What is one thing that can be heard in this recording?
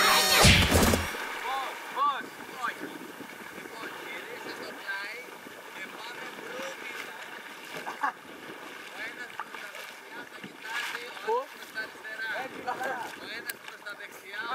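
Water laps and splashes against a floating raft.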